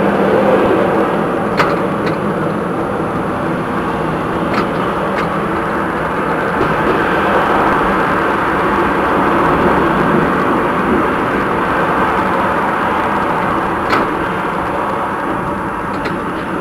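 A tram rumbles steadily along rails.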